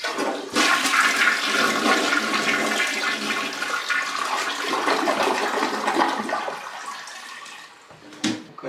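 A toilet flushes with rushing, gurgling water.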